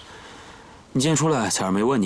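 A young man asks something in a lively voice.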